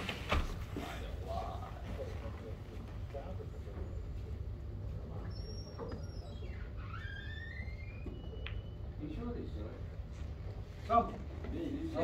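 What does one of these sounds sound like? Pool balls click sharply together.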